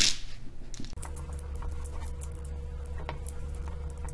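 Dominoes click against each other.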